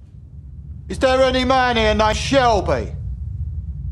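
A man calls out a question to a room.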